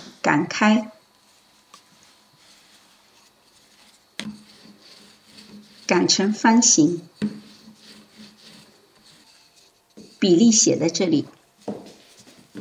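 A rolling pin rolls softly over dough on a wooden board.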